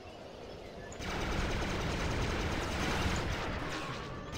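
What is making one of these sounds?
A heavy landing thumps and kicks up rushing noise.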